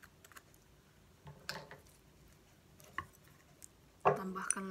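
Chopsticks tap against a plate.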